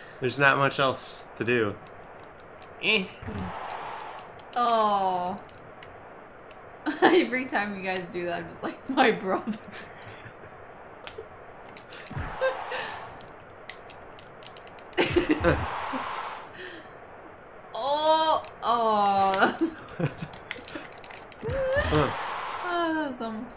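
A young woman talks and laughs into a nearby microphone.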